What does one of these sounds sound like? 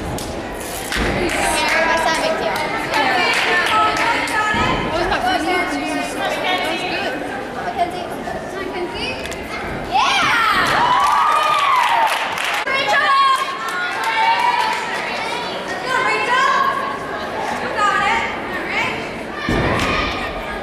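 Feet thud on a balance beam.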